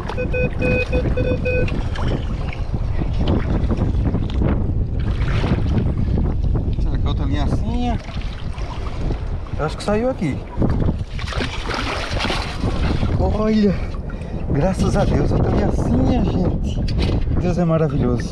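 Water sloshes and splashes.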